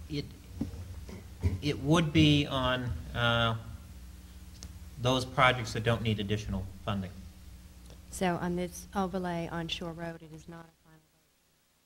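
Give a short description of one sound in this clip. A man speaks into a microphone in a large room.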